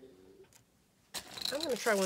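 Small metal rings rattle in a plastic container.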